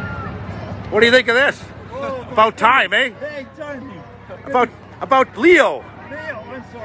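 A middle-aged man talks cheerfully close by.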